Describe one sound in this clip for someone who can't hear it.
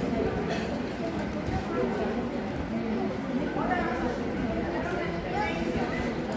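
A woman talks steadily in an echoing hall.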